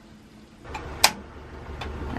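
A gas stove igniter clicks sharply.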